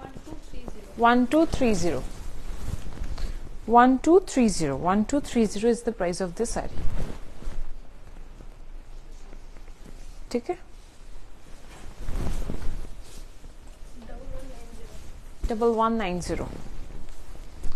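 A young woman's voice sounds close by, with lively rises and falls.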